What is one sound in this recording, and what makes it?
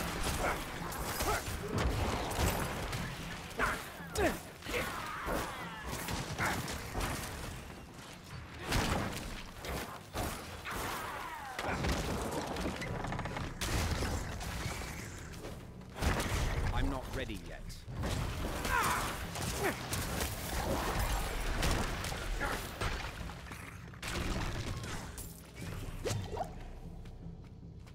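Weapons clash and strike repeatedly in a fast fight.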